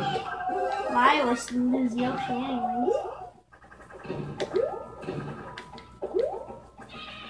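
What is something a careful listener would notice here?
Video game music and sound effects play from a television speaker.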